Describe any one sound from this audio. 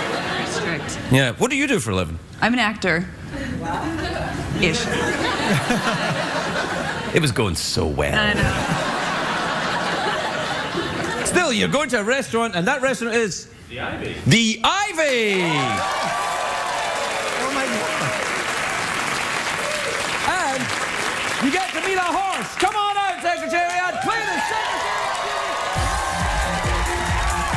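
A middle-aged man talks and jokes with animation through a microphone.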